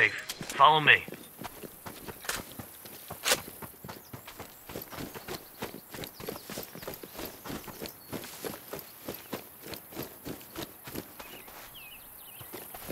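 Footsteps rustle steadily through grass and dry leaves.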